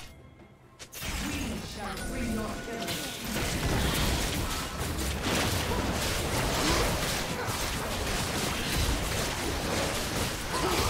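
Spell blasts and weapon hits crackle and whoosh in a fast, busy fight.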